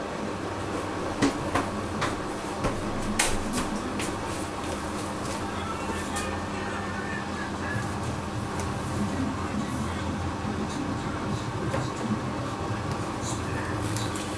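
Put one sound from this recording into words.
Items knock and click against a washing machine drum.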